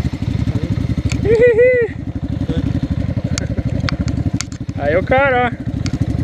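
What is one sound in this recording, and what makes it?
A motorcycle engine rumbles steadily nearby.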